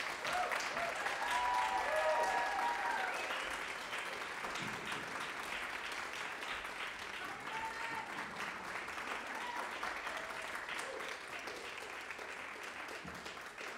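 Footsteps thud on a wooden floor in a large echoing hall.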